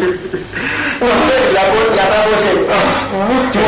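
An elderly man speaks in a pained voice.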